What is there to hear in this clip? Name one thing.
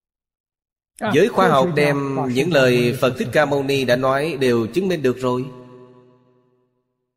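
An elderly man speaks calmly and warmly into a close microphone.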